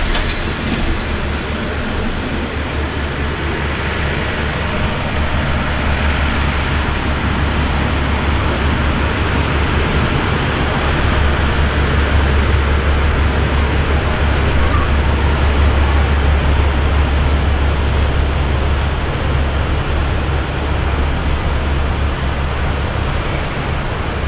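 A steady low engine drone hums.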